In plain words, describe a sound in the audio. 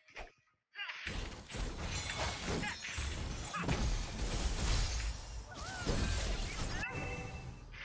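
Clashing fight sound effects and spell blasts ring out in a video game.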